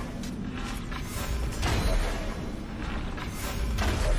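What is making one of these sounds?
An arrow is shot from a bow.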